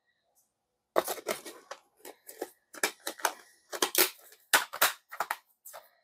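A disc clicks as it is pried off a plastic hub.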